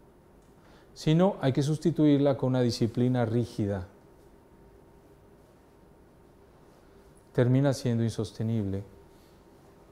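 A man speaks calmly, in short bursts with pauses.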